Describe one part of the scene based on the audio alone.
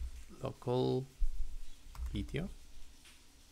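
A young man speaks briefly and calmly, close to a computer microphone.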